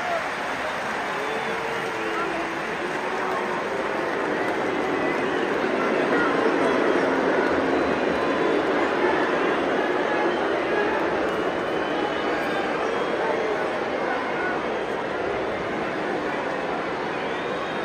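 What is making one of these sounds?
A large stadium crowd chants and roars loudly all around.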